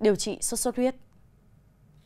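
A young woman speaks calmly and clearly, as if reading out news.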